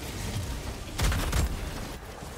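Gunfire and a loud explosion boom.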